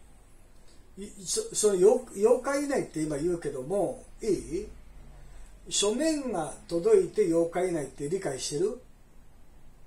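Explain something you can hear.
A middle-aged man talks on a phone close by, calmly.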